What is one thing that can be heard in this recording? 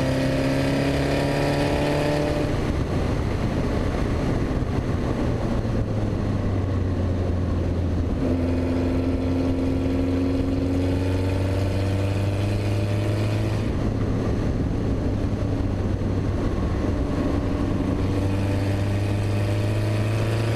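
Wind rushes loudly past an open cockpit.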